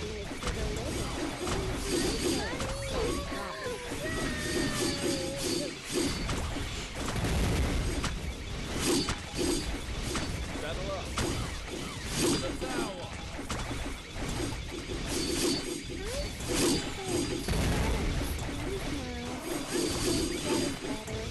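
Explosions and magic blasts go off rapidly in a video game battle.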